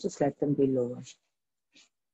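A woman speaks calmly over a microphone.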